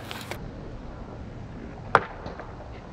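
Skateboard wheels roll over concrete.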